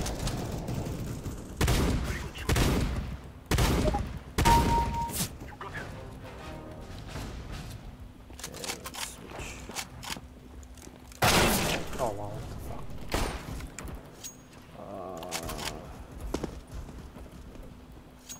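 A young man talks into a headset microphone with animation.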